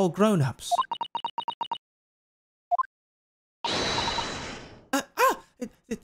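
A young man speaks with animation into a microphone, close by.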